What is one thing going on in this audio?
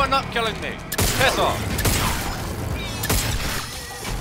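A gun fires with loud bangs.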